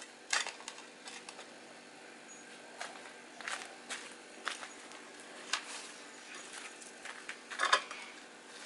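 A metal blade scrapes and knocks on concrete.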